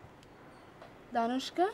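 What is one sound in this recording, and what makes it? A young woman speaks on a phone.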